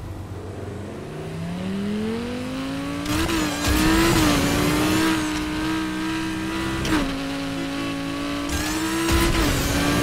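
A sports car engine roars as the car accelerates hard through the gears.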